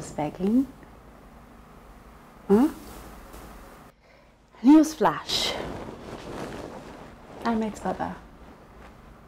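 A young woman speaks playfully, close by.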